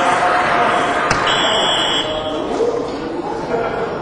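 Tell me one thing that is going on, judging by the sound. A dart thuds into a dartboard.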